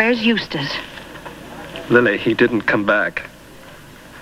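A young man speaks calmly and warmly up close.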